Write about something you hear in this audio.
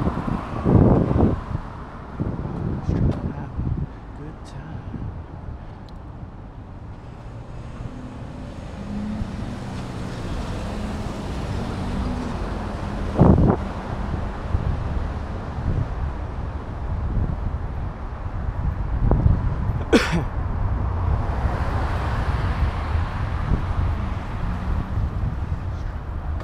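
Wind rumbles and buffets against the microphone outdoors.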